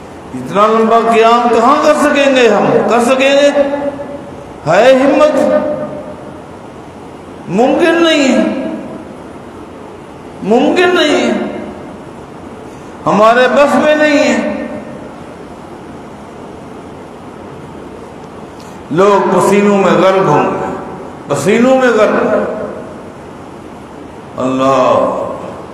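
A man speaks into a microphone with animation, in short phrases with pauses.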